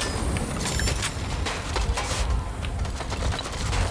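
A drone engine whirs and hums.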